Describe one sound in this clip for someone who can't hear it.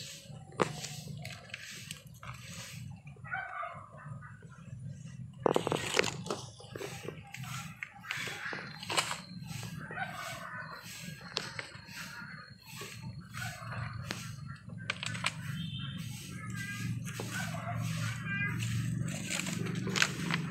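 Small plastic pots knock and rattle.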